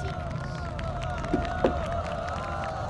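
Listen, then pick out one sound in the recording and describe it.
A wooden stool knocks onto a wooden floor.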